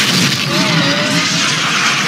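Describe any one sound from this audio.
A huge creature roars loudly.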